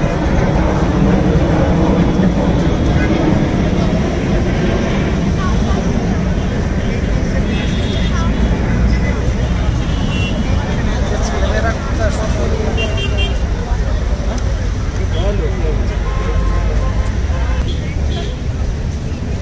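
A large crowd of men and women chatters loudly outdoors.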